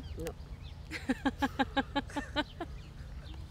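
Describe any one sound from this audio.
A woman laughs.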